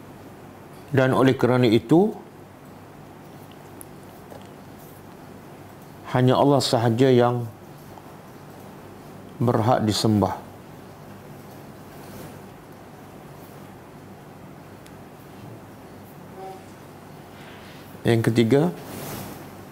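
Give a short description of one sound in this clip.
A middle-aged man speaks calmly into a close microphone, in short bursts with long pauses.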